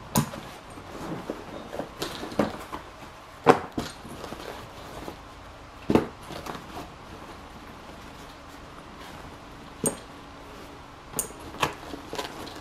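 A fabric bag rustles as it is handled.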